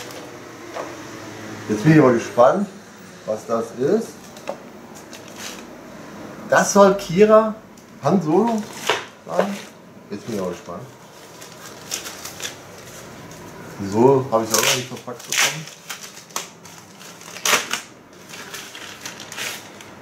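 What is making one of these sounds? Plastic packaging crinkles in a man's hands.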